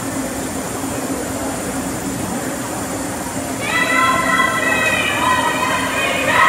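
Distant voices murmur in a large echoing arena.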